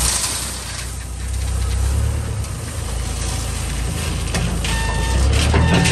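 Gravel pours from a bucket into a trailer with a rattling hiss.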